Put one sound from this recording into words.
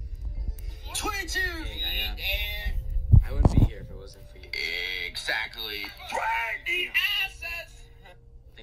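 A tablet speaker plays short voice clips.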